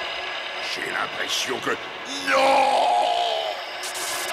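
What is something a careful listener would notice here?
A man growls out words in a deep, rough voice.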